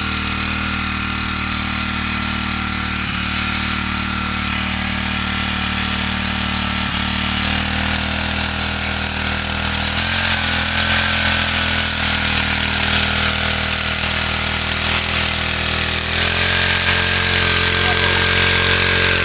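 A small engine drones steadily close by.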